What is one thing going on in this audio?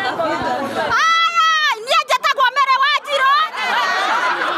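Women ululate loudly and joyfully.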